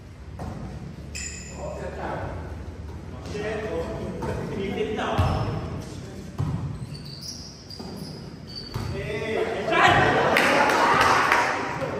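A volleyball thumps off players' arms and hands in a large echoing hall.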